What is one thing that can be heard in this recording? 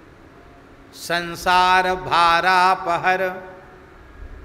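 An elderly man chants in a long, held, sung tone into a microphone.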